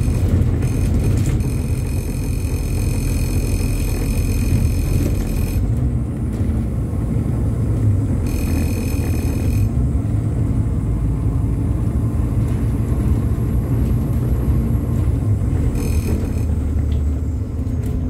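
A diesel bus engine rumbles while the bus drives along a road.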